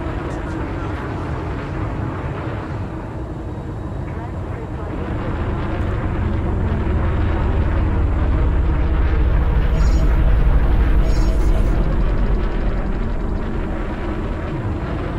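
A spaceship engine rumbles deeply, swelling louder and then easing off.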